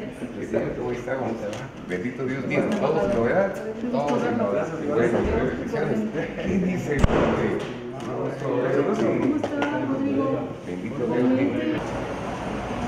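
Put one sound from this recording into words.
Several men talk and greet one another nearby.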